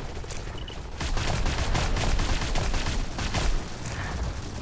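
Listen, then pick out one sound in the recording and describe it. Gunshots from a rifle ring out loudly.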